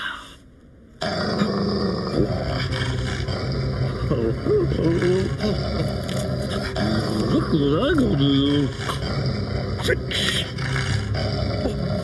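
A dog growls fiercely and close by.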